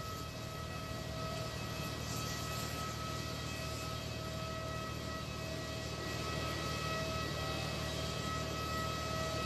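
A jet engine whines steadily nearby.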